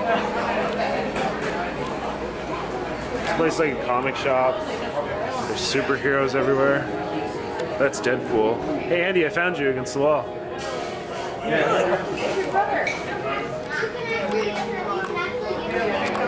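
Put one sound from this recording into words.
Men and women chatter and talk nearby in a busy room.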